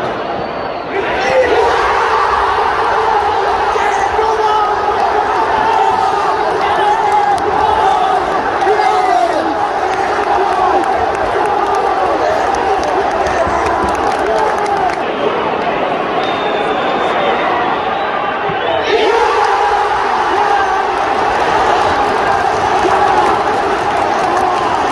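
A huge stadium crowd erupts in loud roaring cheers.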